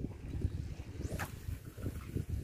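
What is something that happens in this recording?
A fishing rod swishes through the air as a line is cast.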